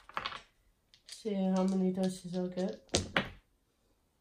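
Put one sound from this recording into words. Dice rattle and clatter in a tray.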